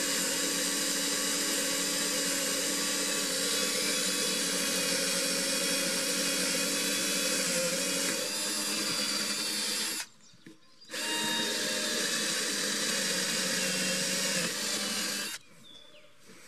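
A cordless drill whirs steadily, driving screws into wood.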